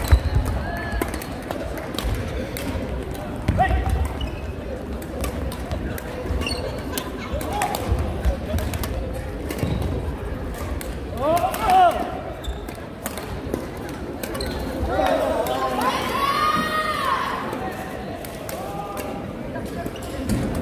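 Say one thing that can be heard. Badminton rackets hit a shuttlecock in a sharp, quick rally.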